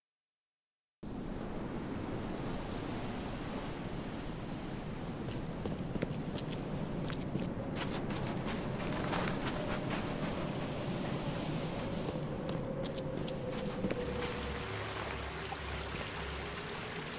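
Footsteps crunch over rough ground outdoors.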